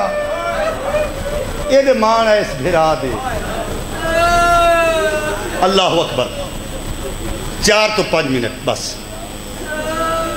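A man speaks passionately into a microphone.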